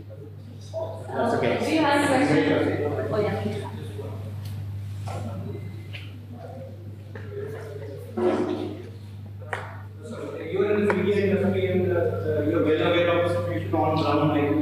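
A woman speaks calmly into a microphone, heard through a loudspeaker in an echoing room.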